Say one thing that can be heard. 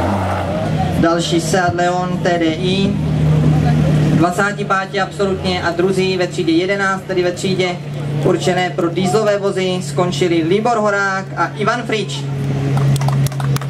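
A man announces excitedly over a loudspeaker.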